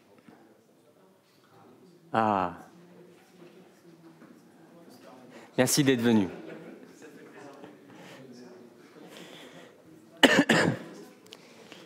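A man speaks with animation to a room, his voice echoing in a large hall.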